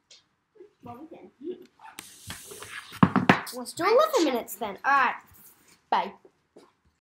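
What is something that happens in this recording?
A young girl talks and squeals excitedly close to the microphone.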